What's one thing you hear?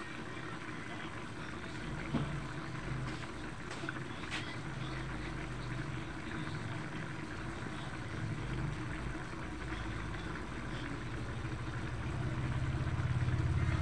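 A thick sauce bubbles and simmers in a wok.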